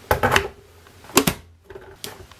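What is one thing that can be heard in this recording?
A kettle switch clicks on.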